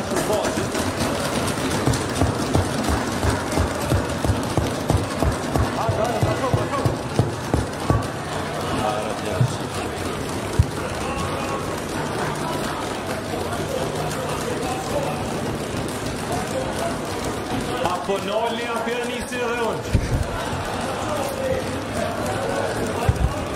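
A crowd of men and women talk and shout over one another in a large echoing hall.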